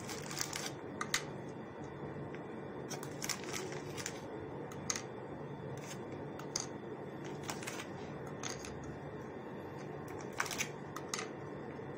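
Biscuits tap and click against a glass dish as they are set down.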